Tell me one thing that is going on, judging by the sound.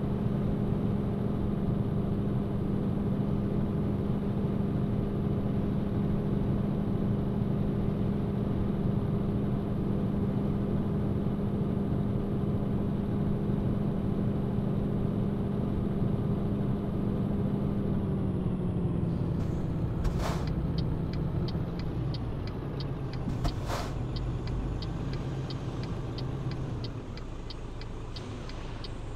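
A truck engine drones steadily, then drops in pitch as the truck slows down.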